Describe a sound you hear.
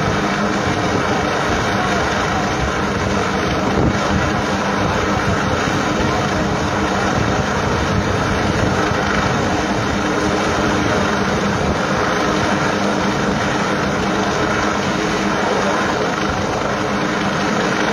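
A helicopter's rotor thumps steadily in the distance.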